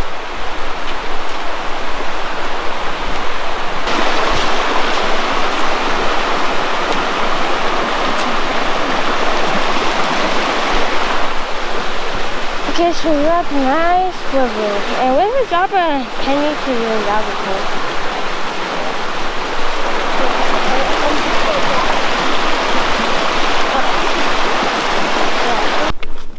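A stream rushes loudly over rocks nearby.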